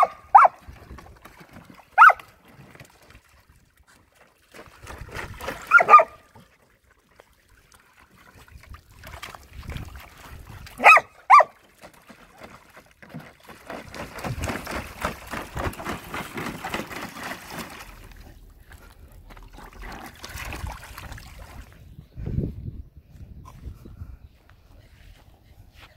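Dogs splash and paddle in shallow water.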